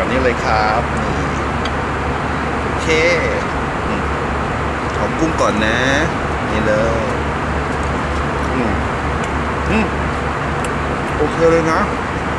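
A man talks with animation close by.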